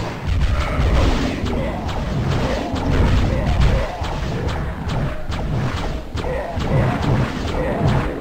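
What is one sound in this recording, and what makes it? Magic blasts zap and crackle in quick bursts.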